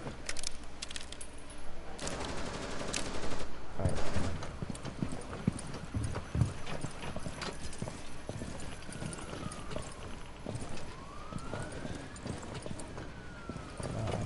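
Boots scuff against a wooden wall during a rope climb.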